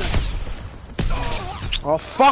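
A grenade explodes with a heavy blast.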